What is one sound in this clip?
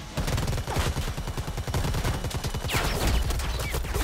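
A spinning blade whooshes through the air.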